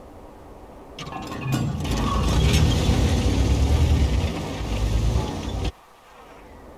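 A tank engine roars and rumbles as the tank drives over sand.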